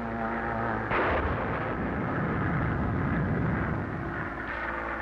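An explosion booms and rumbles on the ground.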